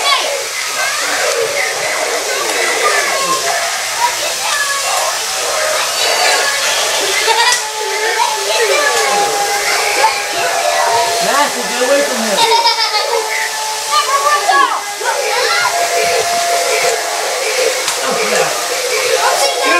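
Many toy robots beep, chirp and babble with electronic voices.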